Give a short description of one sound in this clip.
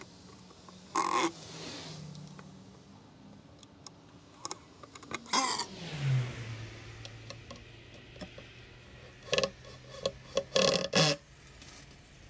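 Wooden boards knock and thud against each other.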